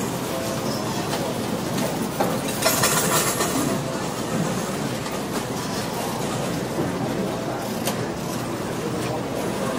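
A crowd murmurs and chatters all around in a large room.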